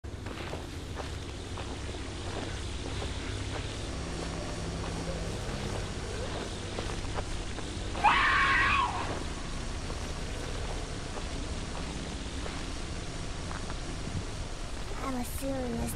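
Footsteps crunch slowly over dry leaves and twigs.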